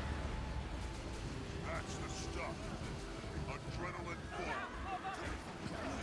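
Magic spells whoosh and crackle in a hectic battle.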